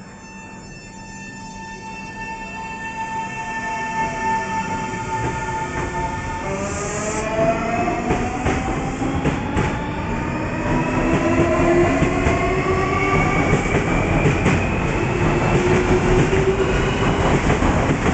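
An electric train's motors whine, rising in pitch as the train pulls away.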